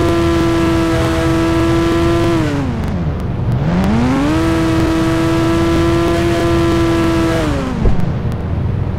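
A car engine hums steadily, dips and rises again, then cuts off.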